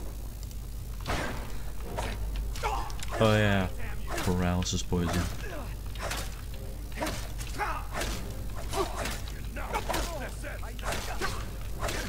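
Metal blades clash and clang against shields in a fight.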